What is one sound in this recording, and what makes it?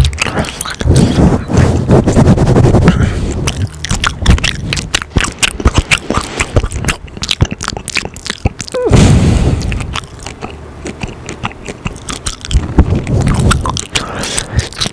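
A foam cover rubs and scratches against a microphone up close, in muffled rustling bursts.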